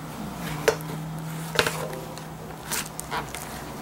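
A plastic bowl knocks and taps as it is handled.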